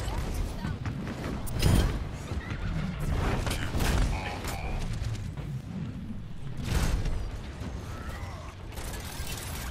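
A heavy metal ball rolls and rumbles over stone.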